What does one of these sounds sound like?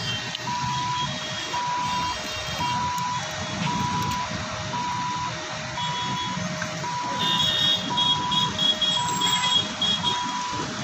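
A two-tone siren wails back and forth steadily.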